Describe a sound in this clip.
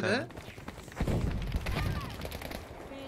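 A heavy explosion booms nearby and rumbles away.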